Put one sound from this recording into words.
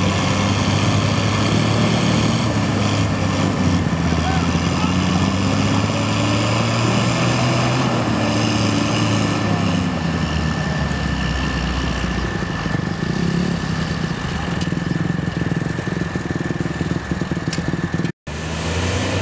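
A truck engine roars and strains.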